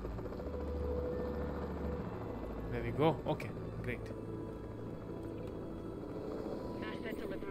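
A helicopter's rotor whirs steadily.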